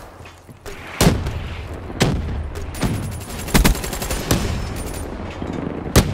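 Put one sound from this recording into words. An automatic rifle fires bursts in a video game.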